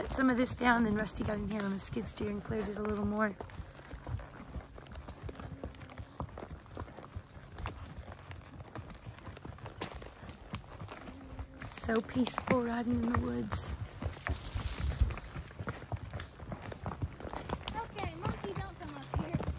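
Horse hooves thud softly on a dirt trail.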